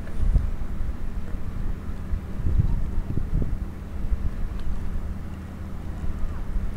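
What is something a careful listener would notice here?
Water laps gently against the hull of a small boat.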